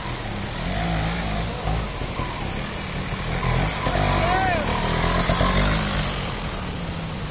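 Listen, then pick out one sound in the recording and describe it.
A motorcycle engine revs and putters close by.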